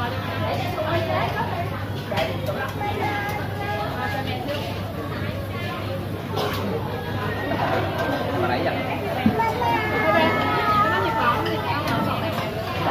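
Many people chatter in the background.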